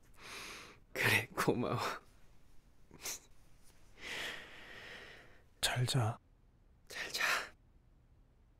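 A second young man answers softly, close by.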